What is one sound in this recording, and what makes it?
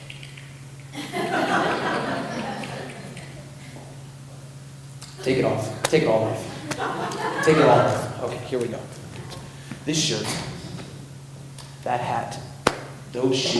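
A young man beatboxes into a microphone, with sharp clicks and hums.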